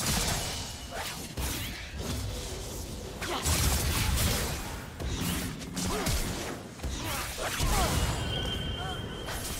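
Spell effects whoosh, burst and clash in a fast video game battle.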